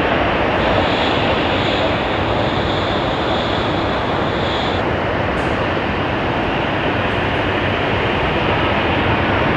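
A jet airliner's engines roar loudly overhead as it climbs away.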